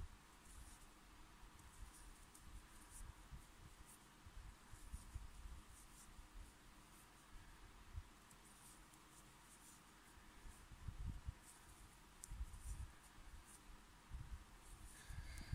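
A metal crochet hook softly clicks and scrapes against yarn.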